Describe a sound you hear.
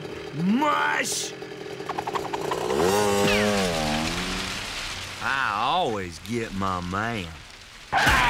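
A man speaks in a drawling, animated cartoon voice.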